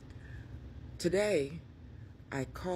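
A woman speaks close to a microphone with expression.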